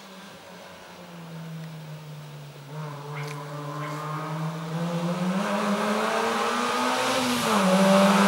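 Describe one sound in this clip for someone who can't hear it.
A car's engine roars louder as it approaches and speeds past.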